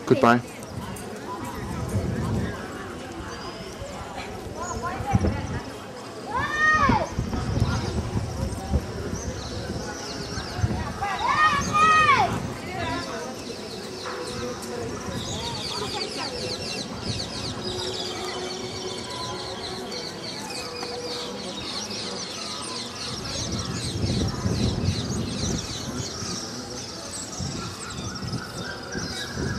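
People chatter faintly in the distance outdoors.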